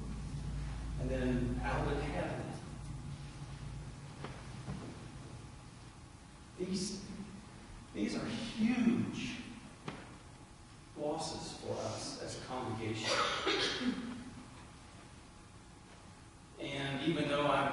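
A man speaks with animation in an echoing hall, heard through a microphone, with pauses between phrases.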